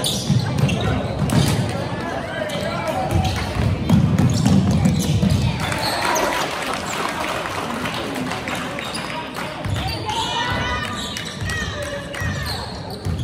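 A crowd of spectators cheers and talks in a large echoing gym.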